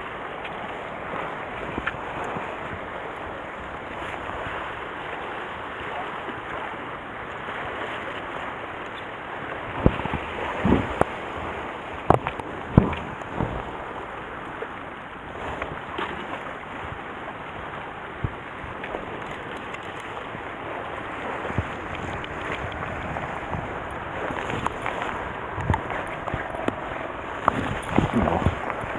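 Waves lap against rocks below.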